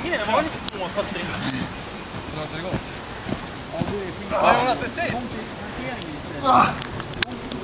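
Sacks thump on the ground as young men hop in them.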